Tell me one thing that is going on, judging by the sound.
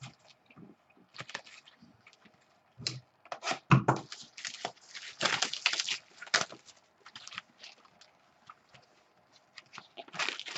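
Hands rip and crinkle plastic wrapping off a box.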